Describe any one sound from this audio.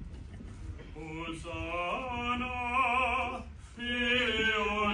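A group of men and women sing a slow chant together.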